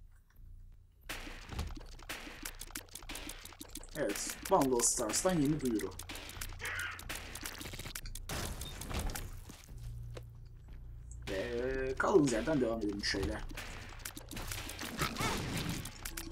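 Rapid game sound effects of shots and splats ring out during a fight with a monster.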